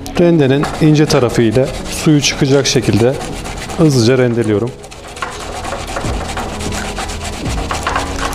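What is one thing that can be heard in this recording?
A grater rasps against garlic.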